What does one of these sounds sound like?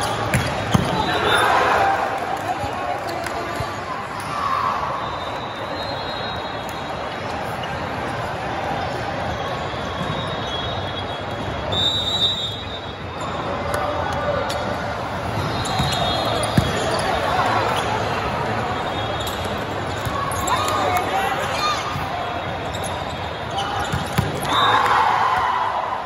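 Players and spectators shout and cheer in bursts.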